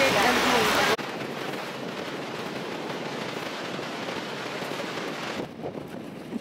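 A large waterfall roars.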